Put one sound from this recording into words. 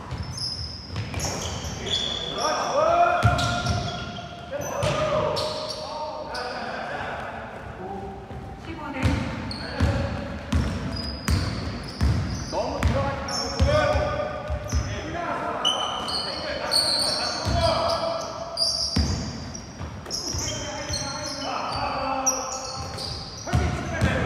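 A basketball bounces on a hard floor with echoing thuds.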